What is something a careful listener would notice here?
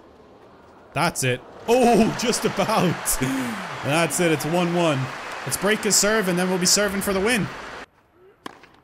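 A crowd applauds in a large stadium.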